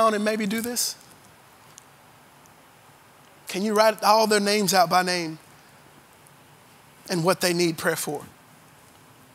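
A man preaches with animation through a microphone, in bursts with pauses.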